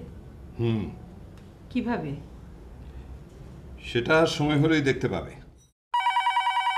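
A middle-aged man speaks calmly nearby.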